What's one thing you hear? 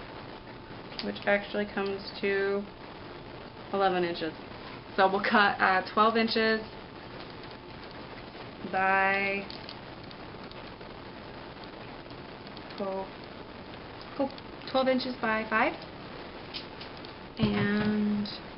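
A young woman speaks calmly and close by, in short phrases.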